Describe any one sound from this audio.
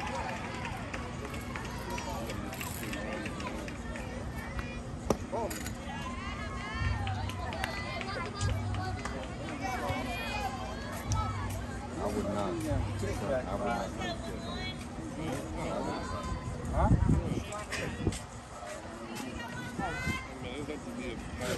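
Young women call out and cheer from the field and sidelines, outdoors.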